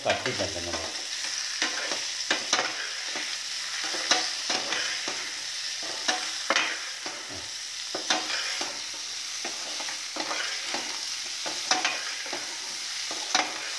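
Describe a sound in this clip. Vegetables sizzle steadily as they fry in oil.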